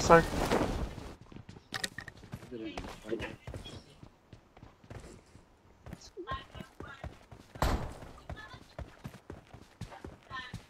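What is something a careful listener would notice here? Footsteps patter quickly on snow and wood.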